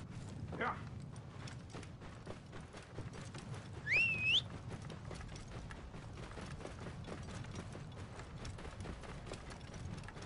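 A camel's hooves thud steadily on sand.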